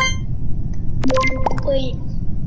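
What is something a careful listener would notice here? A short electronic click sounds.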